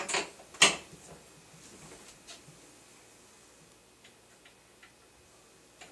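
Metal taps and clicks on a glass door handle.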